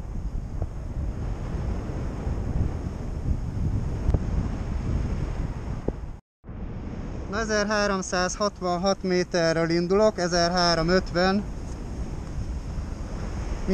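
Wind rushes loudly and steadily past a paraglider in flight.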